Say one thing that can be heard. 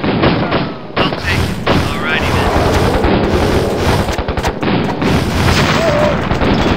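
Explosions boom and rumble in quick succession.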